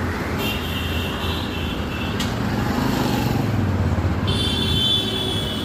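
A motorcycle engine drones as it passes close by.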